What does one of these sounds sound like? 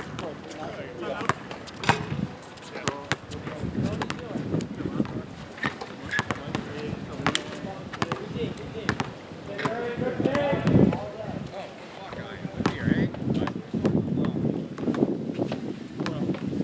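Young men shout and call out to each other at a distance.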